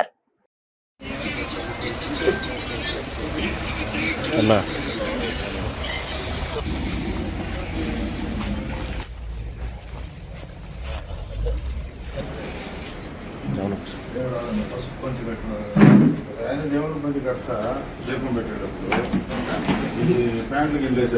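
Several men talk and murmur together nearby.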